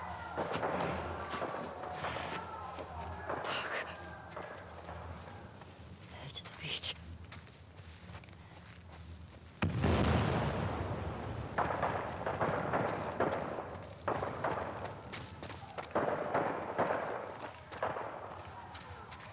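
Footsteps crunch over grass and paving.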